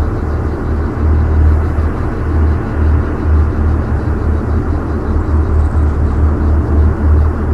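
A tank engine rumbles steadily as it drives away.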